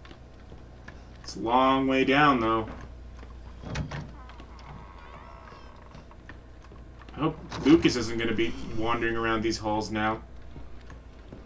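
Footsteps creak slowly on wooden floorboards.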